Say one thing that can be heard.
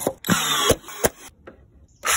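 A brad nailer fires a nail into wood with a sharp snap.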